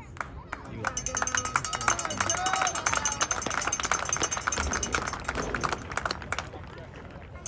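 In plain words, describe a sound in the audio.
A crowd of spectators claps and cheers.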